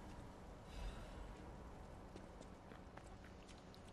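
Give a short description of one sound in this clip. Footsteps tread on wet cobblestones.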